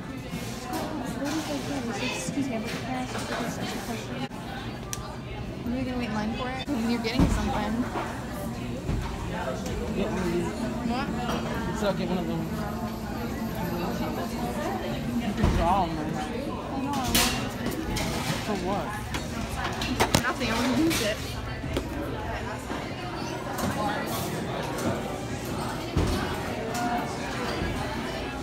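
People chatter throughout in a busy indoor room.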